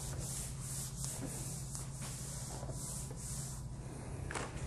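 An eraser wipes across a whiteboard with rhythmic swishing strokes.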